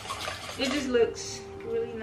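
A whisk clinks against a metal bowl.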